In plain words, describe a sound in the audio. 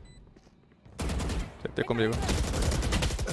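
Rapid gunfire bursts out in a video game.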